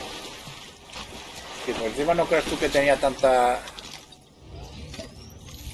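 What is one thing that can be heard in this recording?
Water splashes softly as a figure swims.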